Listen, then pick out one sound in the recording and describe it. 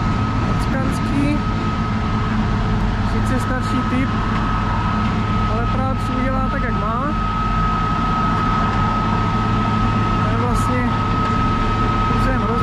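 A heavy construction machine's diesel engine rumbles steadily nearby.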